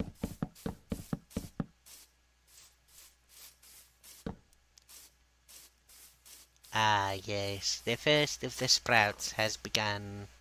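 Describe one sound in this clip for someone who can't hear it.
Footsteps thud softly on grass.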